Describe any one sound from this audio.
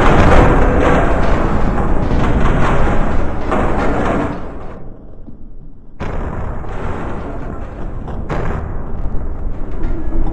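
A heavy tank engine rumbles loudly.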